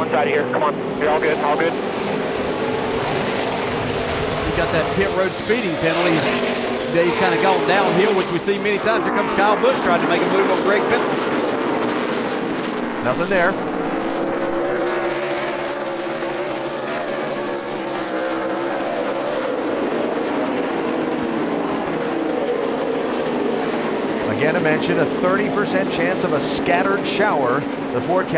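Race car engines whine up and down in pitch as drivers shift gears.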